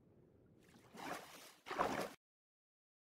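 Water splashes.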